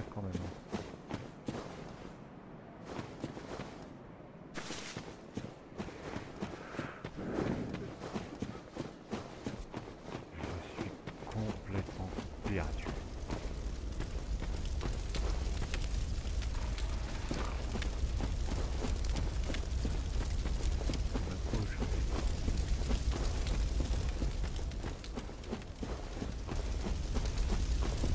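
Footsteps crunch steadily over rough, wet ground.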